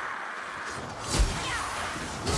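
A blade swings and strikes creatures with a heavy thud.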